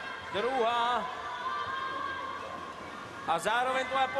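A swimmer splashes through water.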